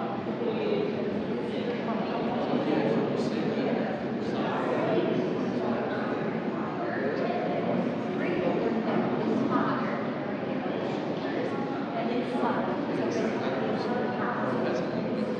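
A crowd of people murmurs and chatters in an echoing hall.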